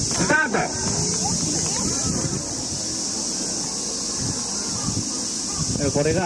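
A crowd of children chatters and shouts outdoors.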